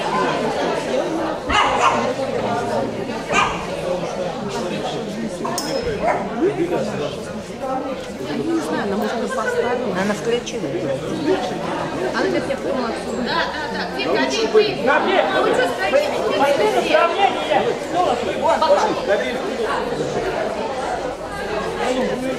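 A crowd of men and women chatters throughout a large echoing hall.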